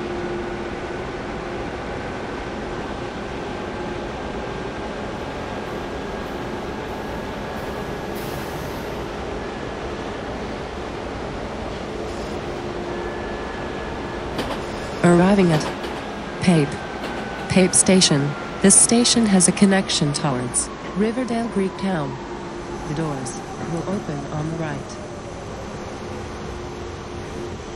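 Steel wheels rumble on the rails.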